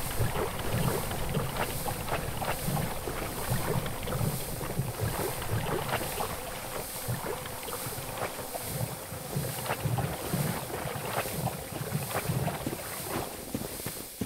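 Footsteps splash and slosh through shallow water.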